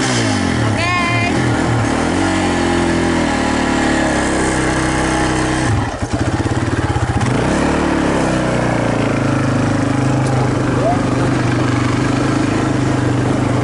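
A young woman laughs and talks up close.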